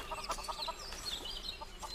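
Garden hoes chop into soil.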